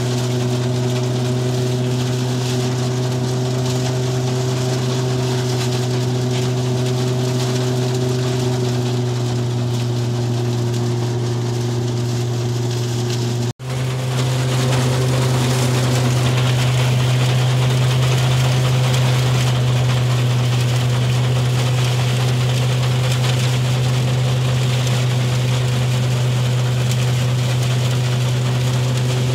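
A threshing machine engine drones loudly and steadily.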